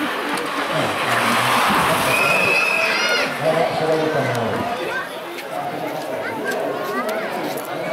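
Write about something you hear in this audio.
A crowd of spectators chatters outdoors.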